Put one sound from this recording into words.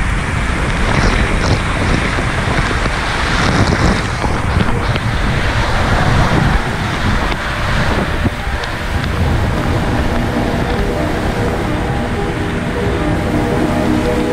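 Water rushes and splashes down an open slide outdoors.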